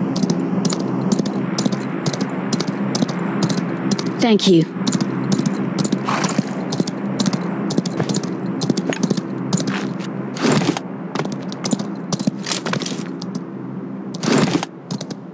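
A horse gallops with rapid, regular hoofbeats.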